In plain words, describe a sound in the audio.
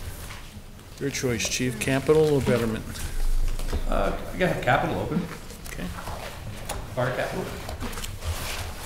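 A man speaks through a microphone at a meeting table.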